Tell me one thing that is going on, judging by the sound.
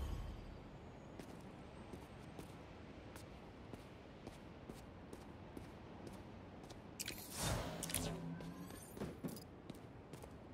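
Quick footsteps patter across a hard rooftop.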